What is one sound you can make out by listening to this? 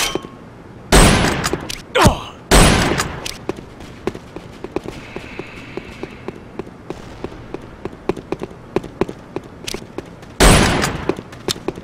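A sniper rifle fires loud single shots in a video game.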